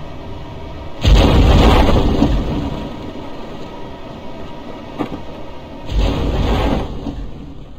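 Loud rocket separation blasts rumble twice.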